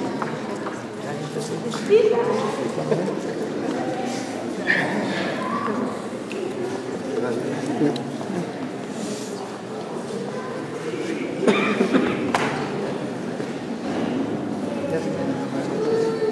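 A crowd of men and women chatter nearby in an echoing hall.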